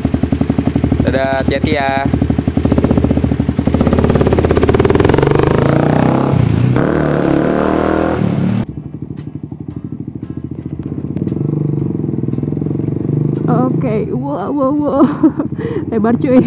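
A motorcycle engine runs with a deep, steady rumble.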